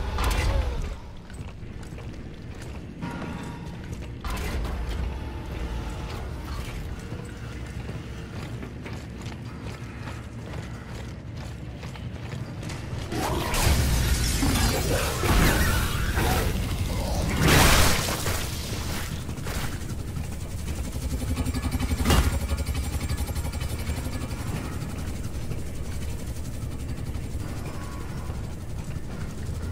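Heavy boots clank steadily on a metal floor.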